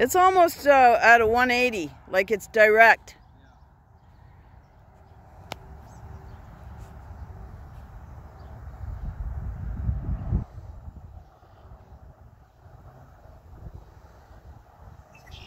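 Wind blows across open ground.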